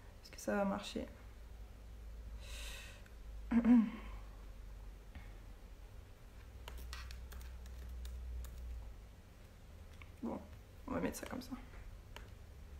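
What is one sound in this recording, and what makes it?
A young woman speaks quietly and calmly through a laptop microphone.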